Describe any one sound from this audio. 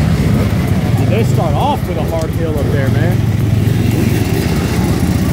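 A dirt bike engine revs up and pulls away.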